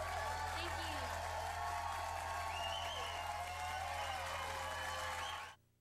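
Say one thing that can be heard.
A band plays live with electric guitars and drums.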